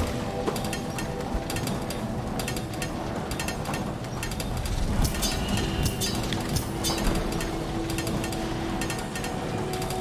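Soft footsteps tap on stone in a video game.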